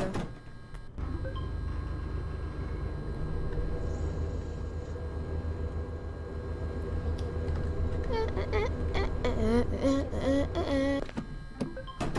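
A microwave hums steadily.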